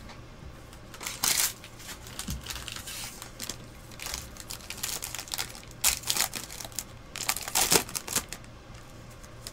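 A foil wrapper crinkles and tears as it is opened.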